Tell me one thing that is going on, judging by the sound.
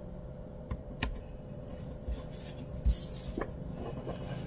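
Paper sheets tap and slide on a table.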